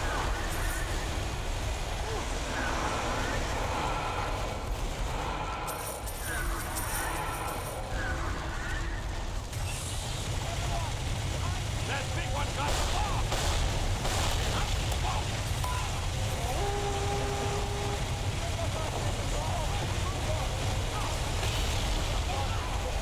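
A rifle fires in short bursts nearby.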